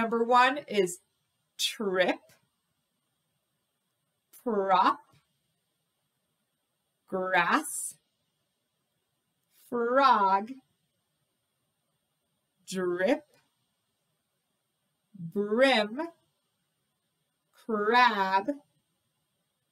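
A woman counts aloud clearly into a close microphone, with short pauses between words.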